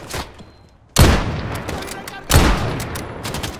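A rifle fires single loud shots.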